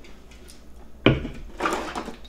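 A metal can knocks down onto a table.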